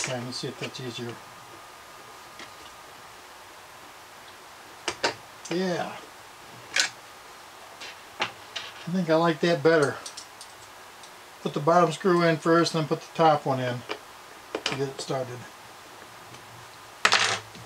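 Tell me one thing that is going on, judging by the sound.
A plastic tool clicks and knocks on a hard surface.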